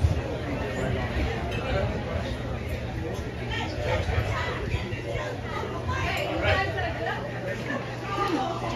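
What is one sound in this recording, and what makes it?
A man speaks into a microphone, heard through a loudspeaker.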